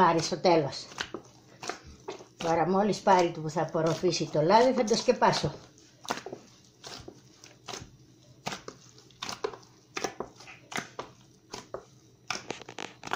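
Hands knead and squelch a soft, sticky dough, with soft slapping sounds.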